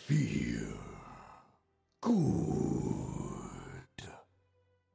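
A magical weapon rings out with a swelling, shimmering whoosh.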